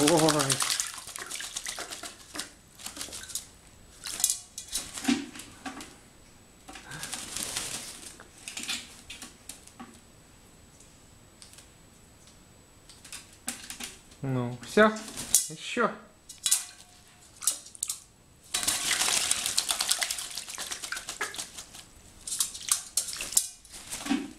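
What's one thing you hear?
Water splashes and sloshes in a metal basin.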